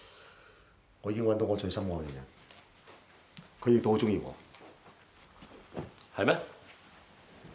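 A man speaks calmly and quietly up close.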